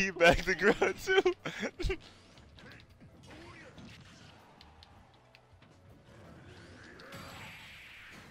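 Punches and blasts from a fighting game crack and boom in quick bursts.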